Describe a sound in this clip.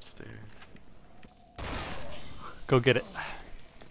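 A gun fires once, loud and echoing.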